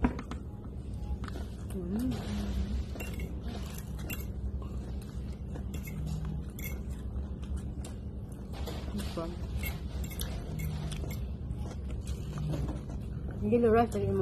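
Metal cutlery clinks against plates and bowls.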